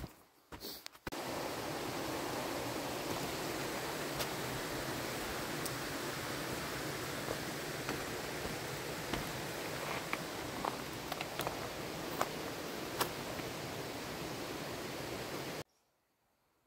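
A stream rushes steadily nearby.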